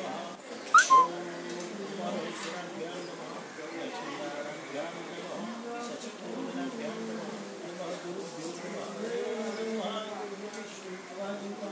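A man chants steadily in a low voice, close by.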